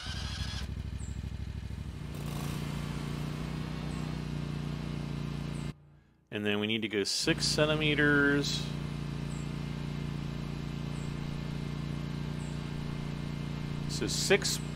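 A mower engine hums steadily, briefly cutting out.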